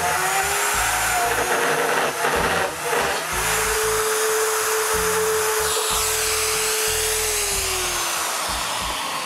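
A power router whines loudly as it cuts wood.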